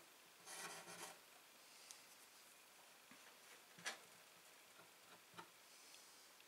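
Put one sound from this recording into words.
A thin metal pin taps and scrapes lightly on wood.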